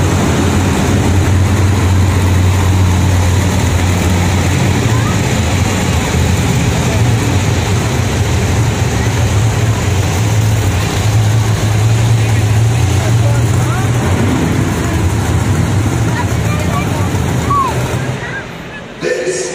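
Monster truck engines rumble and roar in a large echoing arena.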